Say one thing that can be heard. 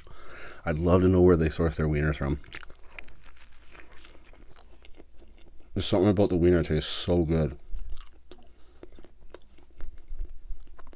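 A man chews food close to a microphone with wet, crunchy mouth sounds.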